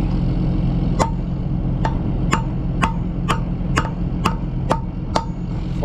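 A metal tool knocks sharply against a metal pin in a quick series of clanks.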